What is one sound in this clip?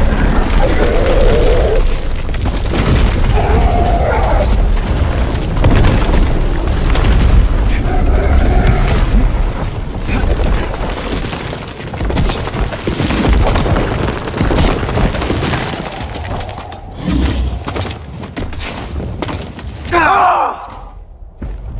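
A large creature lets out shrieking cries.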